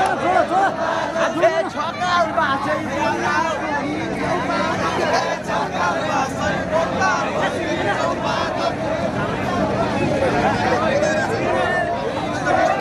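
A large crowd of young men and women sing, shout and cheer outdoors.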